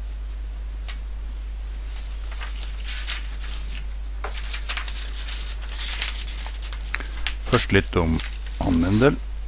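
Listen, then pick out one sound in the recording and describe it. Sheets of paper rustle and flap as they are turned over.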